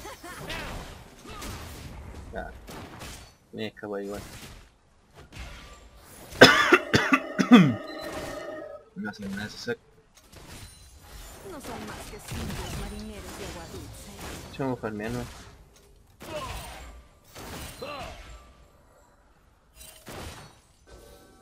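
Magic spells burst and blows land in a fast fight.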